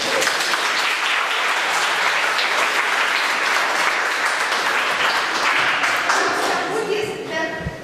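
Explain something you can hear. An audience applauds loudly in a hall.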